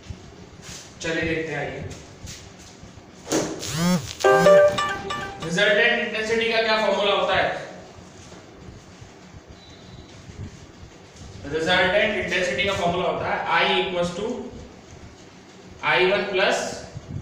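A man speaks calmly and clearly nearby, explaining at a steady pace.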